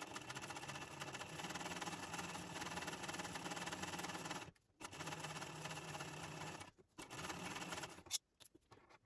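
A sewing machine runs, stitching steadily with short pauses.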